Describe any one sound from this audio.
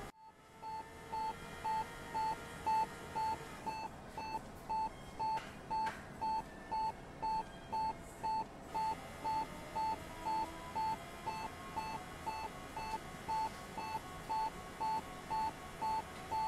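A heart monitor beeps steadily at an even pace.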